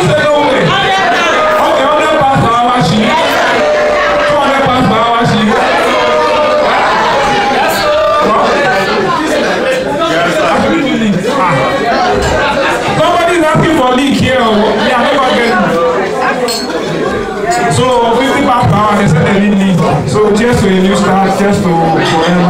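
A crowd of men and women chatter and laugh all around.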